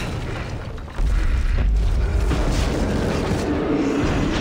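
A heavy body lands with a thud and rumble.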